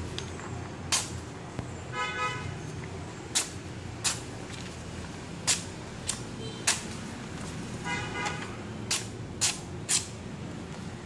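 A sharp blade slices through paper with quick, crisp swishes.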